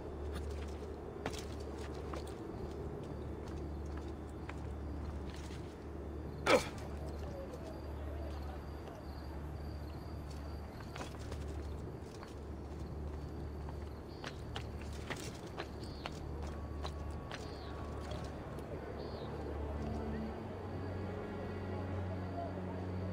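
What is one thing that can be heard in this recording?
Footsteps clatter across roof tiles.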